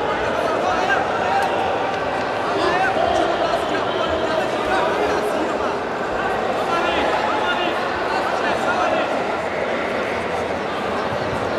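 A crowd of spectators shouts and calls out in a large echoing hall.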